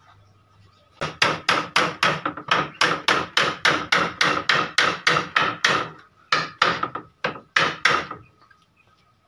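Sandpaper rasps back and forth over wood in quick, even strokes.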